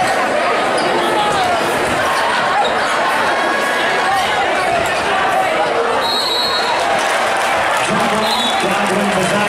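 A large crowd cheers and chatters loudly in an echoing gym.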